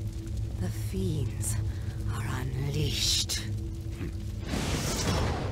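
A woman speaks calmly in a low voice.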